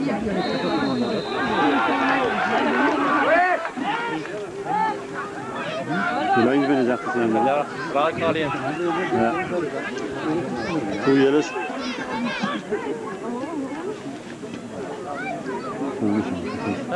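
A crowd of men shouts and cheers nearby, outdoors.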